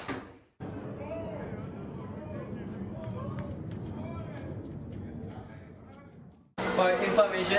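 Young boys talk and murmur.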